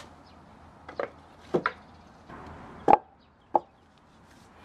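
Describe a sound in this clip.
A concrete block thuds as it is set down on wood.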